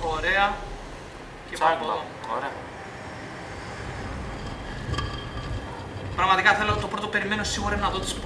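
Two young men talk with animation close to a microphone.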